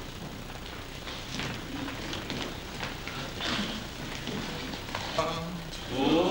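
An elderly man speaks calmly in an echoing room.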